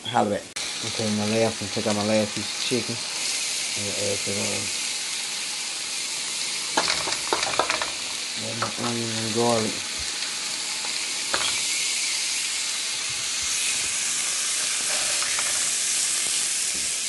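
Food sizzles and crackles steadily in a hot frying pan.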